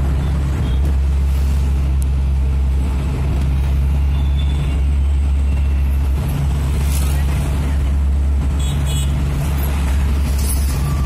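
A car engine hums steadily from inside the cabin as the car drives along.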